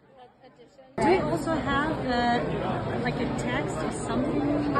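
A woman asks a question up close.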